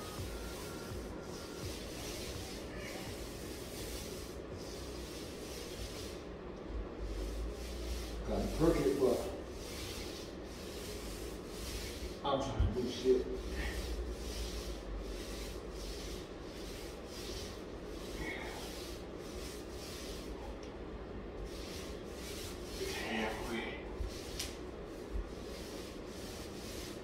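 A long-handled scraper rasps and scrapes against a ceiling in repeated strokes.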